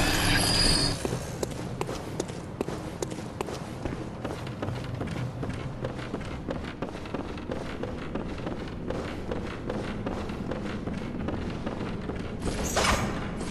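Footsteps patter quickly over stone.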